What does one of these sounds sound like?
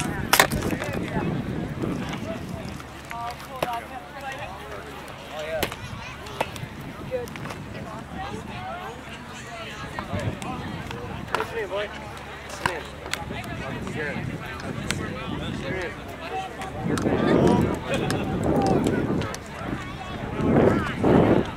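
A crowd chatters outdoors nearby.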